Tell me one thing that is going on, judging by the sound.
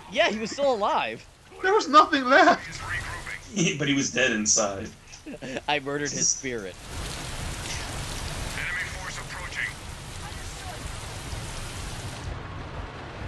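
Rain falls steadily, hissing softly.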